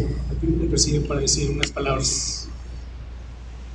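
A man speaks into a microphone over loudspeakers in an echoing room.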